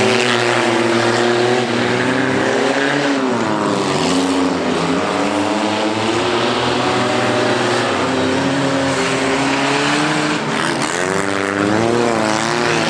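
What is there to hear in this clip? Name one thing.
Car engines roar and rev loudly outdoors, rising and falling in pitch.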